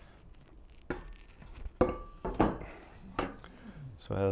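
Wooden boards knock together.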